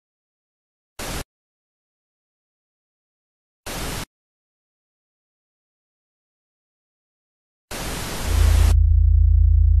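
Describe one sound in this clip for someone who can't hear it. Bursts of harsh static hiss cut in and out.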